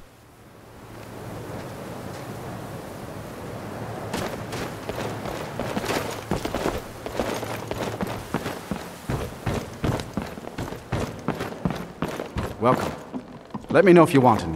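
Footsteps tread on snow and wooden floors.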